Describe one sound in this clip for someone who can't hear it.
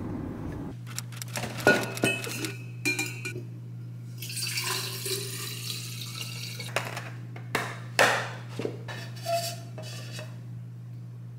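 Plastic lids click and knock.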